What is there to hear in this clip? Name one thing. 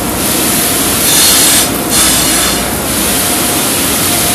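A metal part grinds against a bench grinder's wheel.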